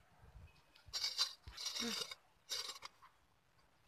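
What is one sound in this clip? A hoe scrapes and chops into soil.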